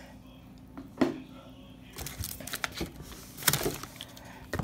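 A plastic bottle knocks softly against other items.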